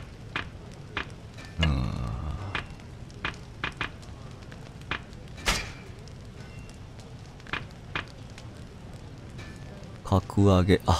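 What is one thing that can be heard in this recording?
Short electronic menu clicks tick.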